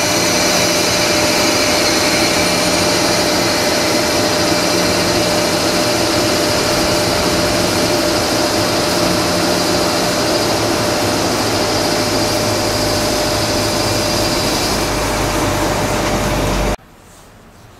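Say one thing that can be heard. An electric locomotive hums with a steady whine as it passes.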